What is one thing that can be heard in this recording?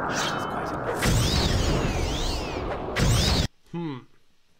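A magic spell whooshes and crackles loudly.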